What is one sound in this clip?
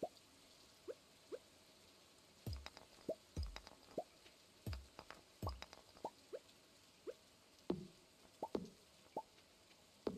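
Short thuds and quick rising blips from a video game sound again and again.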